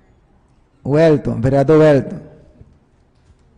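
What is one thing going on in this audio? A man speaks firmly into a microphone.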